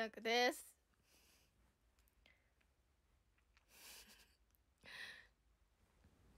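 A young woman whispers and breathes softly close to a microphone.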